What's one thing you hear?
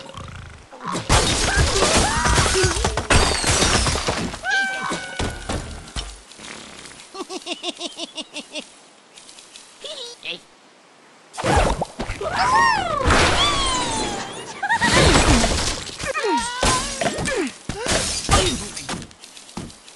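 Wooden structures crash and collapse with clattering debris.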